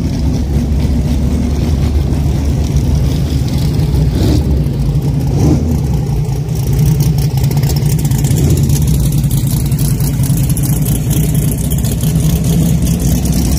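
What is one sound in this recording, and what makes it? A race car engine rumbles loudly at idle nearby.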